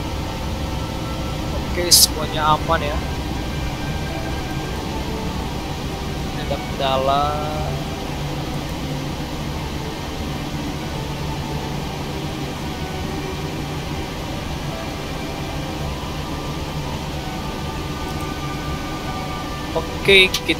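An aircraft's engines hum steadily in a cockpit.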